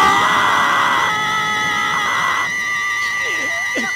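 A man laughs menacingly.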